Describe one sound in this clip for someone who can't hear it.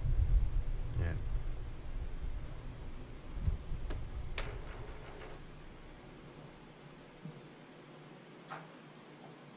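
A printer clicks.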